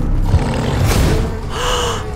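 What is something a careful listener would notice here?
A magical blast bursts with a roaring whoosh.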